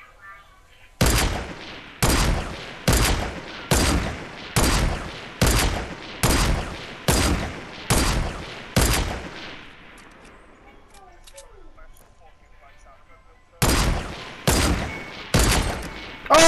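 Gunshots ring out one after another, each echoing briefly.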